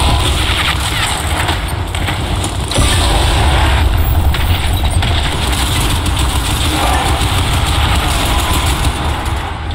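Heavy gunfire rattles rapidly.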